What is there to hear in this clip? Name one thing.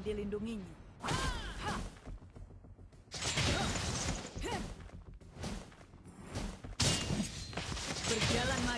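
Game spell effects burst and whoosh during a fight.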